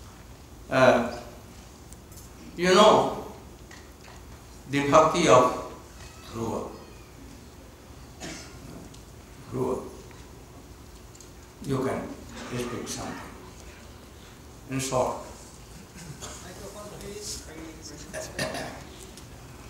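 An elderly man speaks slowly and calmly into a microphone, with long pauses between phrases.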